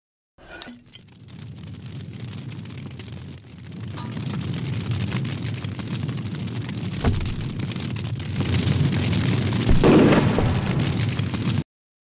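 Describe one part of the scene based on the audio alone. A lantern flame roars and crackles as it burns brightly.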